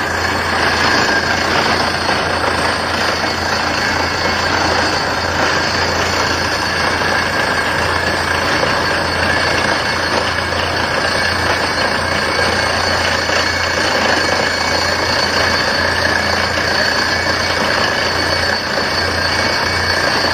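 A drilling rig engine roars steadily.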